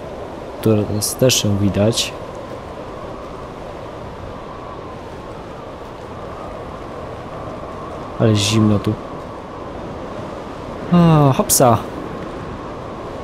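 Wind blows through a snowstorm.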